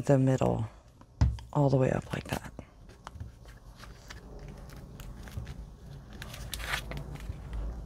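Paper pages rustle and flap as they are handled.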